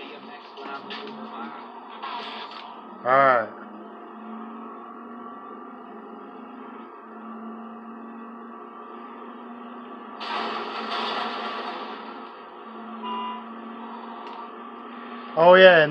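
A car engine hums steadily through a television speaker.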